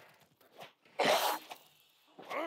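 A heavy blow lands with a loud, sharp thud.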